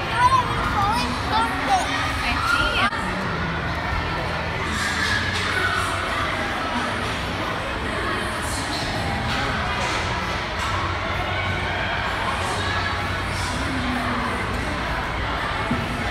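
Many children chatter and shout in a large, echoing hall.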